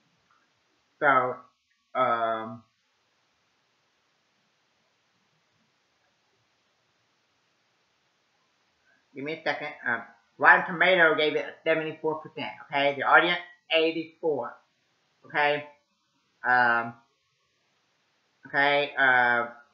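A young man speaks calmly and close by, in short bursts with pauses.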